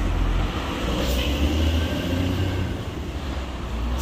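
A bus moves slowly past close by.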